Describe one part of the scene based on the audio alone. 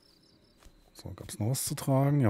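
A heavy log is hoisted with a thump and scrape.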